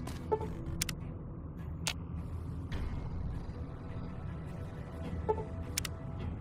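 A low electronic menu tone sounds.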